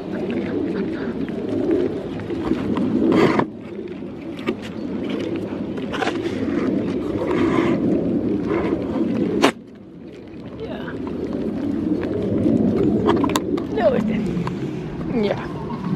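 Goats nibble and crunch food close by.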